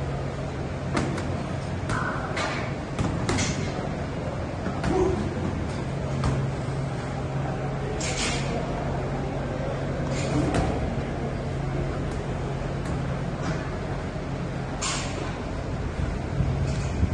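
Boxing gloves thud against sparring pads.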